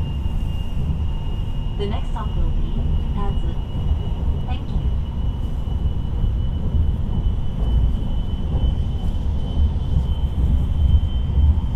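A high steady whine runs through the moving train.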